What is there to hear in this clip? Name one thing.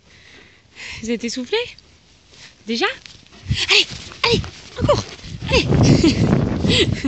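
A dog whines and yelps excitedly close by.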